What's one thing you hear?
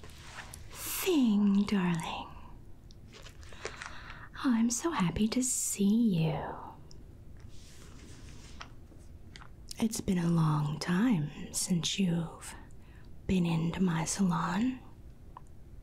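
A middle-aged woman speaks softly and close to a microphone, in short phrases with pauses.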